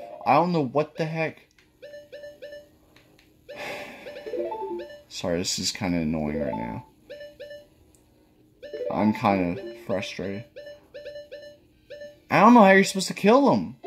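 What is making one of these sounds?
Short electronic game menu blips sound as a cursor moves.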